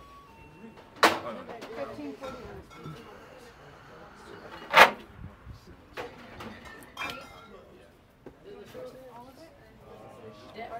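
Glass bottles clink on shelves.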